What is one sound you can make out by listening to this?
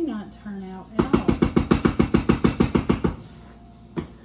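A wooden spoon scrapes rhythmically against a pot.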